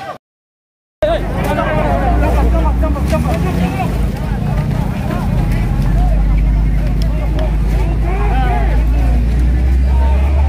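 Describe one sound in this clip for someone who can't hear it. A crowd of men chatters and calls out nearby.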